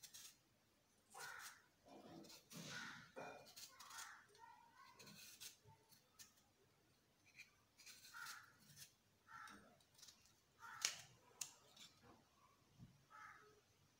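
A knife scrapes the peel off a potato.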